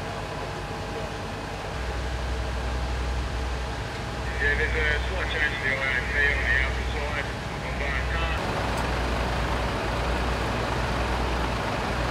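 Fire engines idle with a deep, steady rumble.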